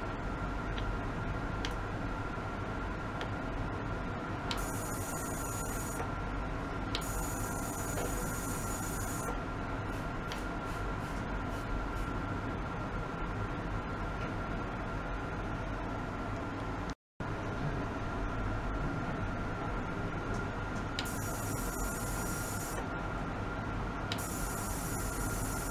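An ultrasonic cleaning bath hums steadily with a thin, high whine.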